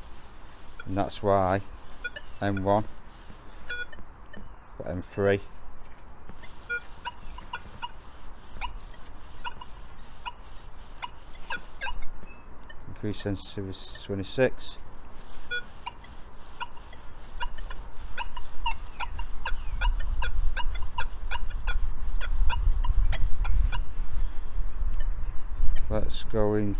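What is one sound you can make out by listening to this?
A metal detector gives short warbling beeps and tones.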